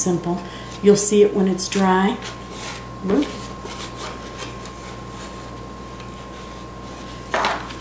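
A stiff paper card rustles and creases as it is folded.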